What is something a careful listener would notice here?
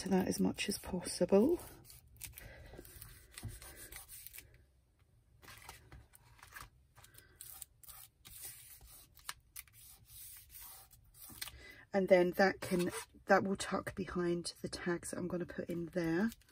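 Hands rub and smooth down paper pages.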